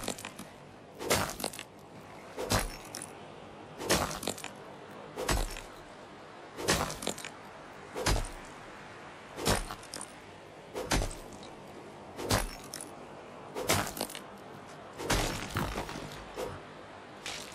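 A pickaxe strikes stone in steady, regular blows.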